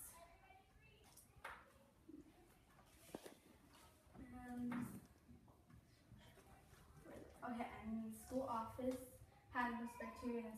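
A girl speaks clearly, presenting in a quiet room.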